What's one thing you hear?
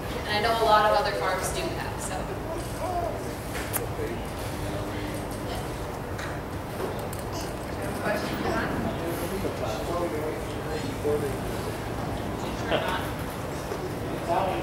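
A young woman speaks through a microphone and loudspeakers in a large tent.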